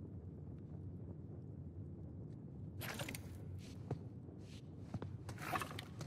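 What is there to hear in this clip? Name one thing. Stone tiles slide and click into place.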